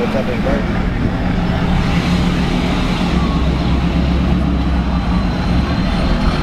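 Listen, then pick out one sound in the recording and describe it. A large pickup truck engine rumbles nearby.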